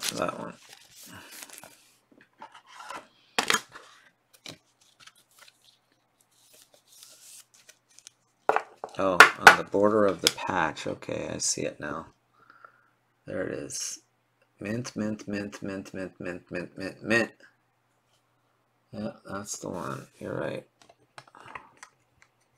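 Trading cards rustle and slide in someone's hands.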